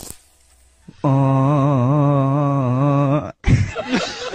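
A young man sings a long, wavering note into a microphone.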